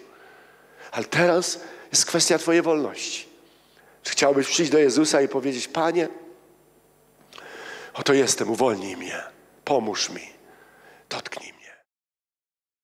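A man speaks with animation into a microphone, heard through loudspeakers in a large room.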